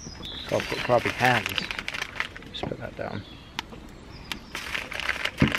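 Aluminium foil crinkles and rustles under hands.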